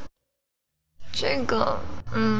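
A second young woman answers calmly, close by.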